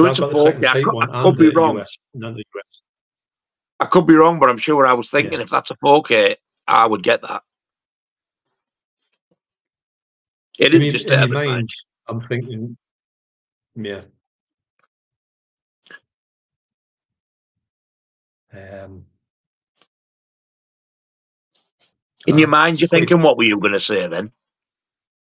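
A middle-aged man talks with animation over an online call, in bursts with pauses.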